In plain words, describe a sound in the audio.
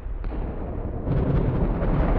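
An electric crackle of lightning zaps.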